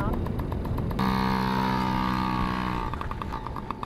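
A small dirt bike engine buzzes and revs nearby.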